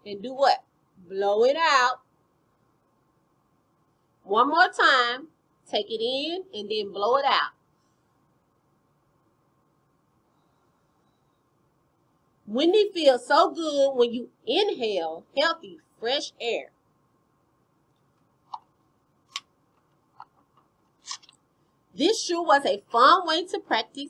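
A woman speaks with animation close to a microphone, with pauses between phrases.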